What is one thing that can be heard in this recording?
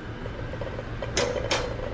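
A shopping cart rolls along a hard floor.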